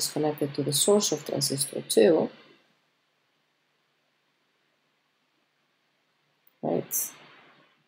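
A woman speaks calmly into a close microphone.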